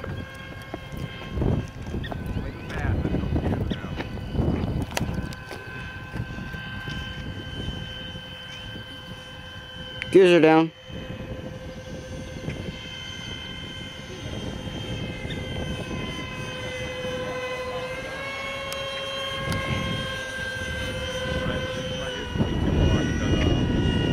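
A jet plane flies overhead with a steady high whine.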